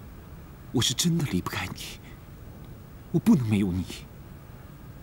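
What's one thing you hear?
A young man pleads softly and tearfully, close by.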